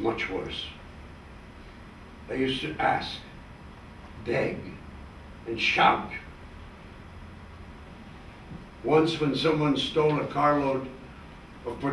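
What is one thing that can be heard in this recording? An elderly man speaks slowly in short phrases with pauses.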